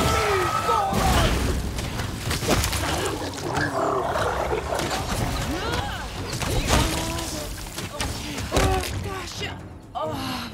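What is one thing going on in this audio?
Magic spells burst and roar with crackling blasts.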